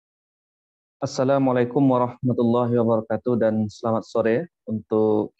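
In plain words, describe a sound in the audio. A man speaks calmly into a microphone on an online call.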